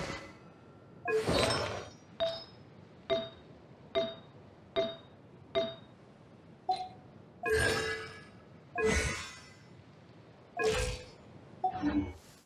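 Short soft game menu chimes sound again and again as options are selected.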